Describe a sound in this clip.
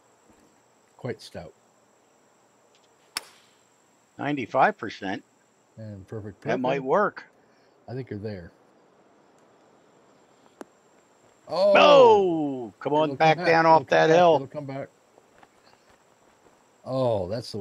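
A man talks casually into a headset microphone, close up.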